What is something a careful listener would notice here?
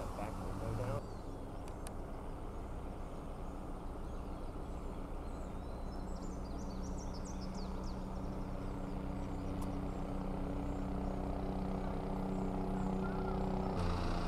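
A helicopter drones overhead with a steady, throbbing hum.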